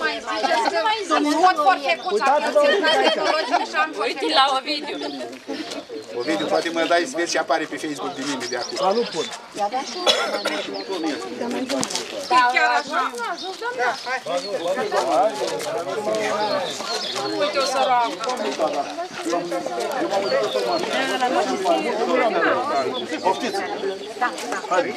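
A crowd of men and women chat outdoors.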